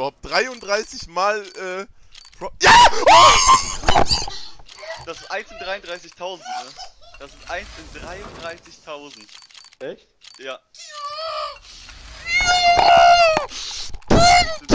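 A young man talks with excitement close to a microphone.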